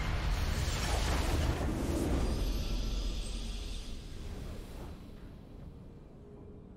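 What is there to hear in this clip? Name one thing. A triumphant game fanfare swells and then fades away.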